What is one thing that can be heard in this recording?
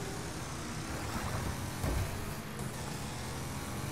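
Traffic cones thud against a car.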